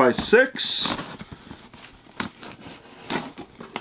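Cardboard rustles and scrapes as a man handles a box.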